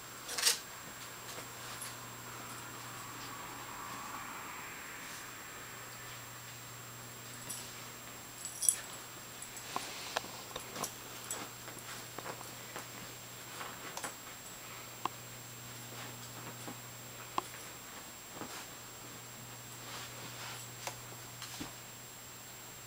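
A small dog scuffles and digs at a pet bed, with soft bumps and scratches.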